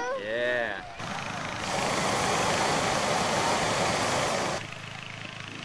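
A hot air balloon burner roars loudly.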